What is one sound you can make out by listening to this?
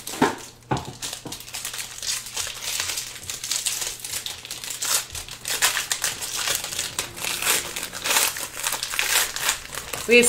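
Foil wrapping crinkles and tears as a pack is opened.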